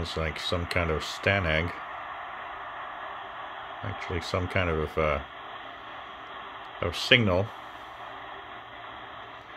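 A radio receiver hisses with steady static through a small loudspeaker.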